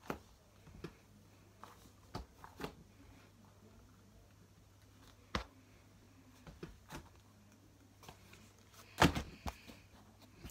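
A block taps and presses down on soft clay.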